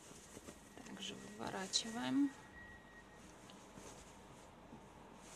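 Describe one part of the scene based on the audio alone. Fabric rustles softly as hands fold and handle it.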